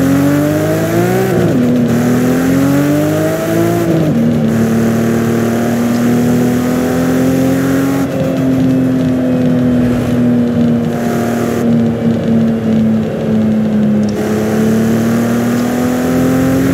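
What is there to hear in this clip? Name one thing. A sports car engine roars loudly, revving up and dropping as gears shift.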